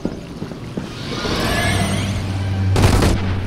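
Glass shatters and tinkles.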